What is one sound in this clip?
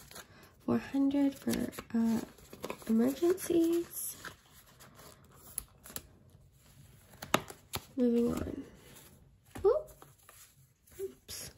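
Paper bills rustle and crinkle as hands handle them.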